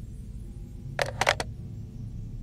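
A telephone handset clicks as it is picked up.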